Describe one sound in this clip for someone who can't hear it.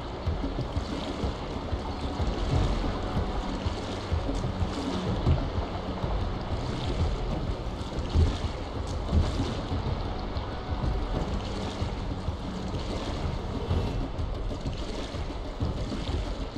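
Rushing water churns and splashes steadily.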